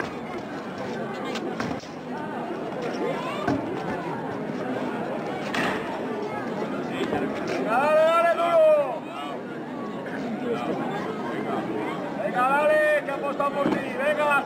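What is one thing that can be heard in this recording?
A crowd of men and women chatters and calls out nearby, outdoors.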